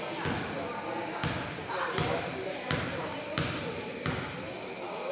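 A basketball bounces on a hard court in an echoing gym.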